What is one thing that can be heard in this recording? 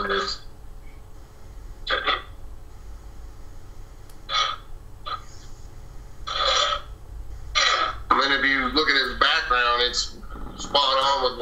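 A man speaks over an online call, with pauses between bursts of speech.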